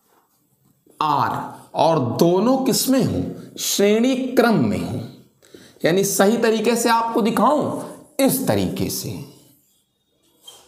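A young man speaks calmly, as if teaching.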